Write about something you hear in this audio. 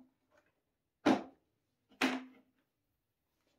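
A folding workbench's legs snap into place with loud clicks.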